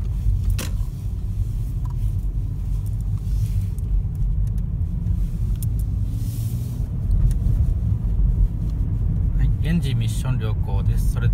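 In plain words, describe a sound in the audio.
A car drives at low speed, its engine and road noise heard from inside.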